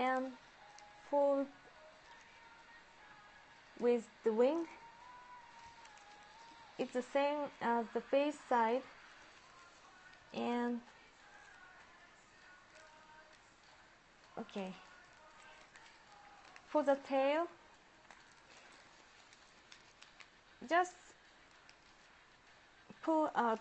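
A woman talks calmly and closely into a microphone, with pauses.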